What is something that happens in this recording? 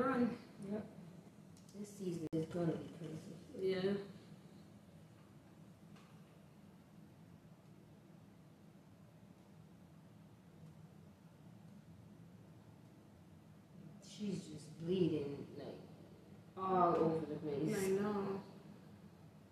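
Two women talk casually nearby, with quiet gaps between remarks.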